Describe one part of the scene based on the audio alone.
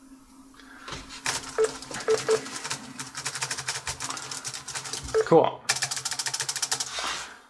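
Fingers tap quickly on laptop keys.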